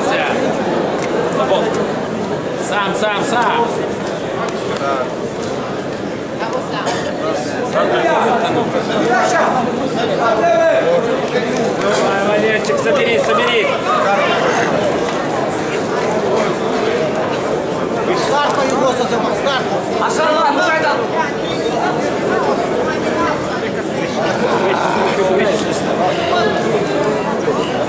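A crowd of men chatters and shouts in an echoing hall.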